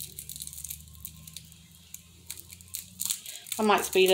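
Foil crinkles softly between fingers.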